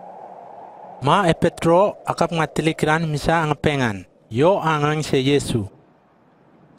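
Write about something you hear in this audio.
A man speaks firmly and clearly, close by.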